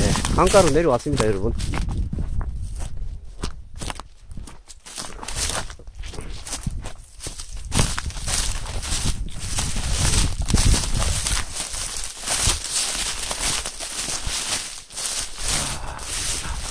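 Wind gusts outdoors, rustling through dry grass.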